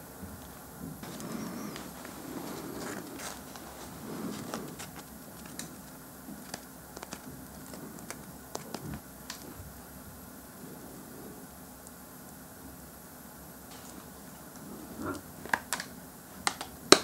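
A young man talks softly and close to a microphone.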